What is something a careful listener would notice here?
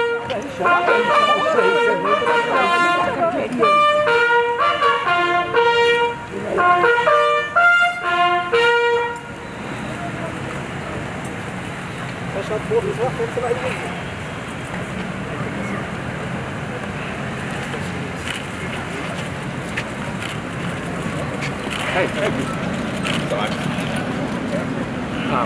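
Footsteps tap on pavement as several men walk.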